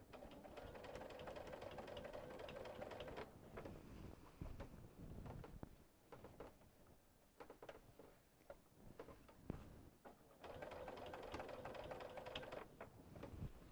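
A sewing machine hums and stitches rapidly in bursts.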